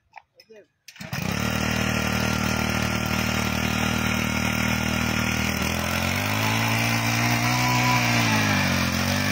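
A small petrol engine sputters to life and runs with a loud, steady chug, its pitch dipping and rising as it works.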